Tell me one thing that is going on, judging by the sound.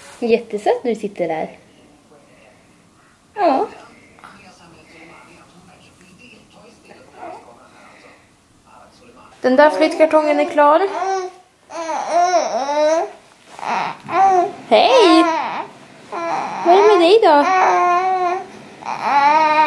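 A woman talks close by in a high, sing-song voice to a baby.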